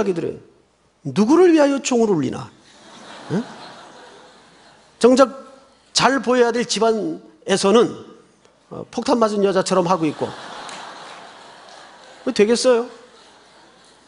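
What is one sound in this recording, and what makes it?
A middle-aged man speaks calmly and firmly through a microphone in a reverberant hall.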